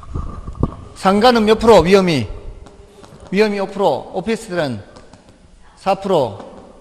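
A man speaks with animation through a microphone, close by.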